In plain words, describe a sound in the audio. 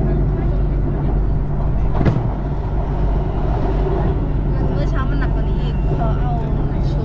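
A train rumbles steadily along an elevated track.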